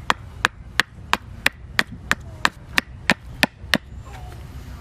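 A hammer strikes the back of an axe head in quick, even knocks, splitting wood.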